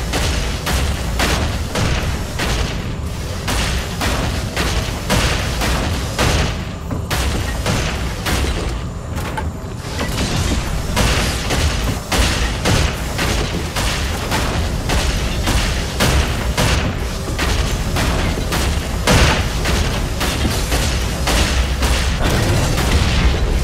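Heavy metallic footsteps stomp in a steady rhythm.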